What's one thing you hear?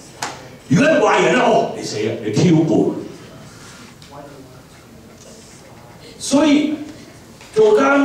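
An older man speaks with animation through a microphone.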